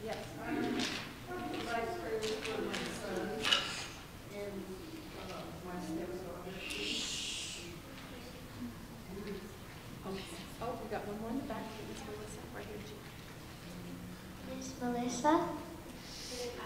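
A young girl speaks into a microphone, heard through a loudspeaker in an echoing room.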